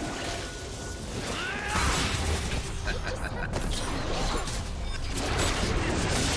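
Magic spell effects whoosh and crackle in a fight.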